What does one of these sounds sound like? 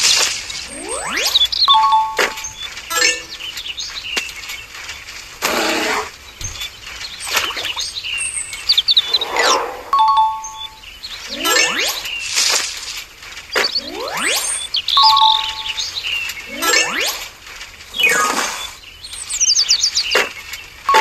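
Playful cartoon music plays throughout.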